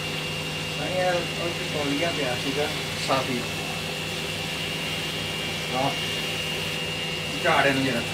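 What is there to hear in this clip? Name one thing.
A fork scrapes and clinks against a metal wok.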